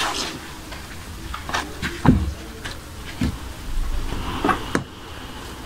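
Fabric rustles and swishes as it is shaken and handled.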